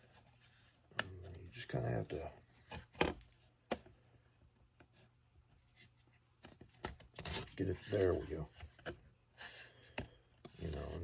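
Small wooden parts click and tap as they are handled.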